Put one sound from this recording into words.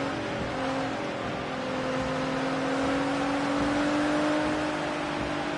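A race car engine drones steadily, its pitch slowly rising.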